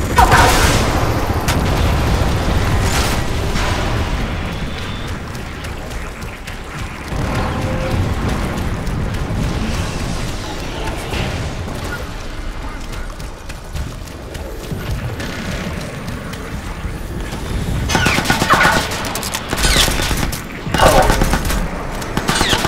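A low rumble of fire and distant battle goes on steadily.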